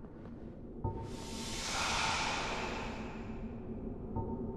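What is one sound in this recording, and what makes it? A magical whoosh rises and fades.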